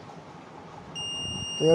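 A multimeter gives a steady, high beep.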